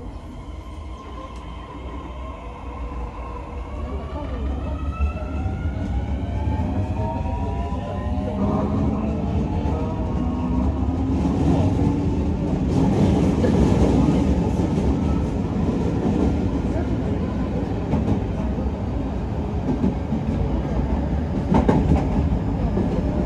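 A train rumbles steadily on the rails, growing louder as it gathers speed.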